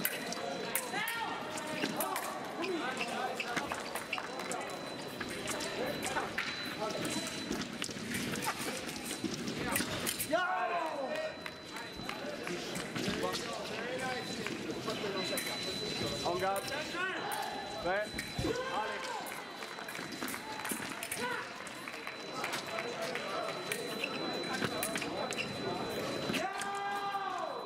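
Fencers' shoes squeak sharply on the floor.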